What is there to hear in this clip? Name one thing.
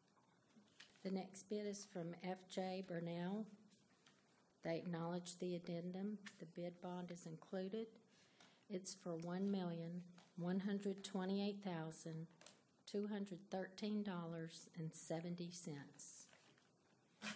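A woman reads out calmly through a microphone in a large room.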